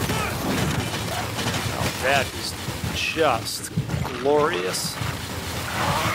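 Blasts of energy burst with whooshing noise.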